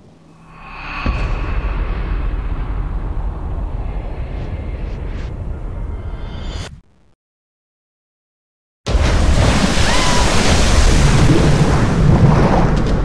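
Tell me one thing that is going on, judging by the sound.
Water churns and bubbles underwater.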